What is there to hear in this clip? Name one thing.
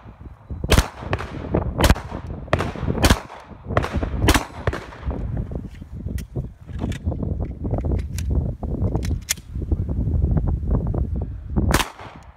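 Pistol shots crack loudly outdoors, one after another, with a short echo.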